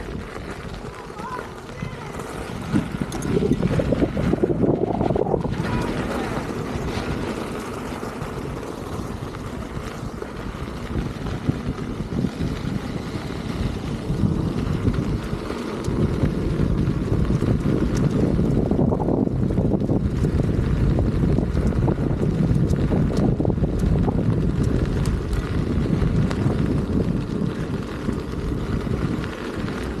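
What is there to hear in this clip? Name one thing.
Small wheels rumble over a gravel path.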